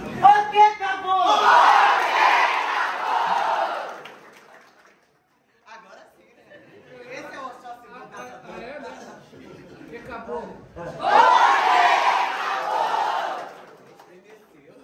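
A crowd of men and women cheers and shouts loudly in an echoing hall.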